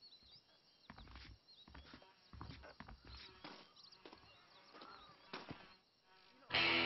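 Footsteps crunch on dry dirt.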